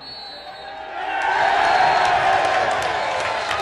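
A football crowd erupts in a roar of cheering.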